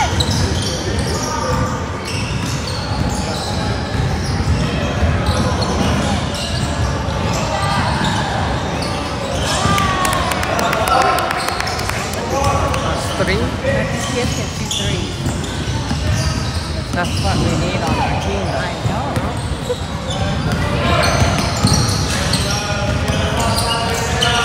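Young players and onlookers call out and chatter in an echoing hall.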